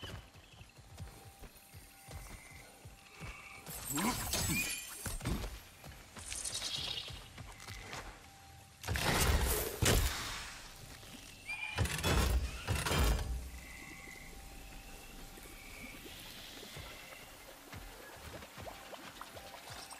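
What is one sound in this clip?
Heavy footsteps thud on soft ground.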